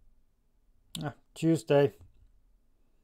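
A young man makes a short murmur close by.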